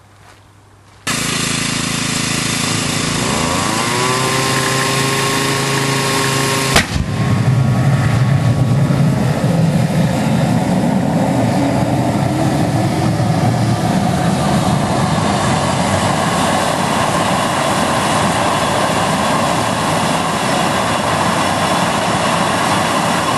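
A leaf blower blows air into a small jet turbine.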